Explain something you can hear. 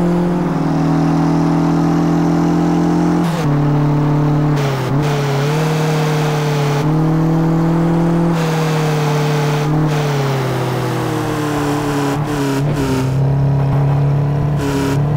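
A car engine roars steadily, its pitch rising and dipping as the car shifts gears.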